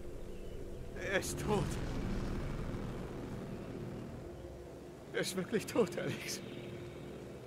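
A man speaks quietly and sadly, close by.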